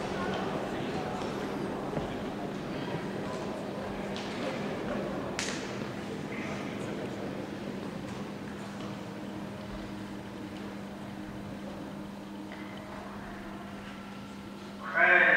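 A crowd murmurs softly in a large echoing hall and slowly quietens.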